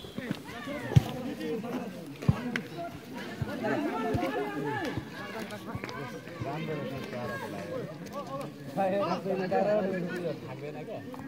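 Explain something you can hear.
Young men shout and call out to each other outdoors across an open field.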